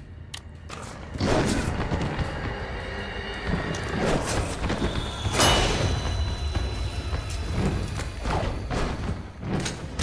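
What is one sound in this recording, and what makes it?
A monster growls and screeches.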